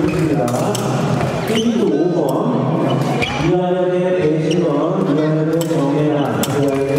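Fencing blades clash and click.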